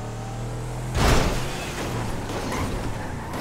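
A car thumps heavily over a bump.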